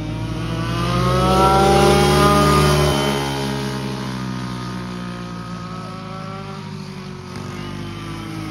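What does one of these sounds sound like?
Go-kart engines buzz loudly as they race past, then fade into the distance.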